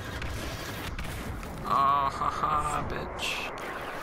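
An explosion bursts with a loud crackle.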